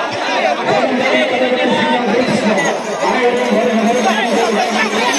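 A large crowd of men shouts and clamours excitedly close by.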